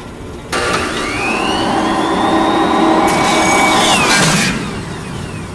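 A spinning saw blade whirs and clatters to a stop.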